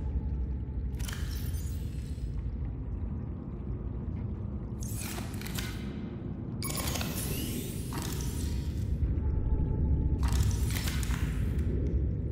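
Short bright electronic whooshes sound now and then.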